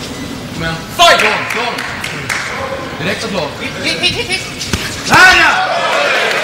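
A crowd of spectators cheers and shouts in a large hall.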